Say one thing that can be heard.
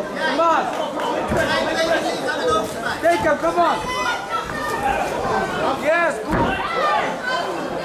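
Gloved punches thud against a fighter's body.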